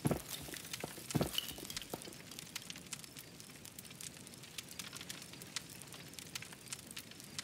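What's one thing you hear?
A small fire crackles and pops outdoors at night.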